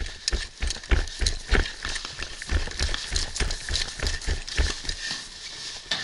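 Footsteps thud quickly on the ground as someone runs.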